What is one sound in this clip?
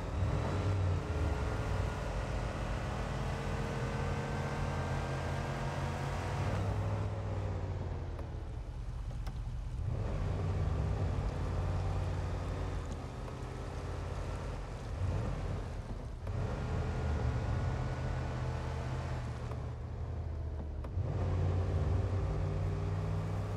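A truck engine rumbles steadily, rising and falling as it accelerates and eases off.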